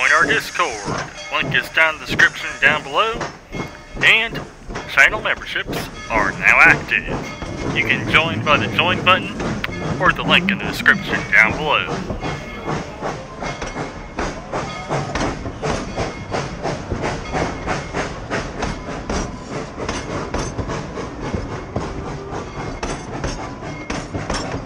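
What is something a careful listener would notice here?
Train wheels clack rhythmically over rail joints as carriages roll past close by.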